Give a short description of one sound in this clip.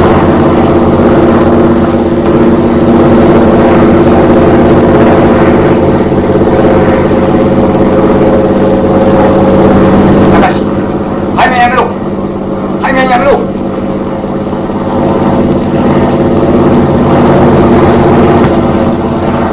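A propeller plane's engine drones steadily overhead.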